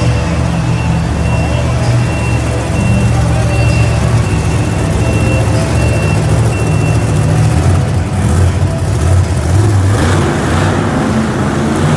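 Monster truck engines roar loudly in a large echoing arena.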